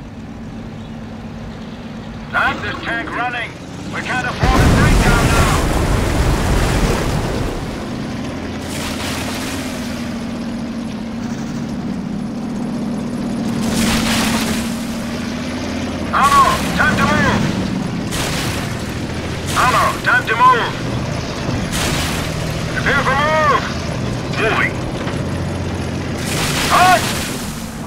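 A tank engine rumbles and clanks.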